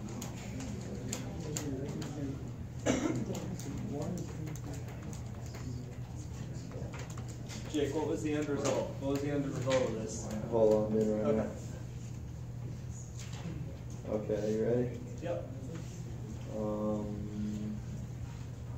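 A man speaks calmly in a room.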